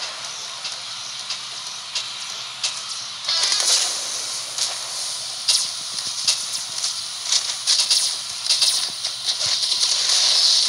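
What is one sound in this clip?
Game blasters fire in quick bursts.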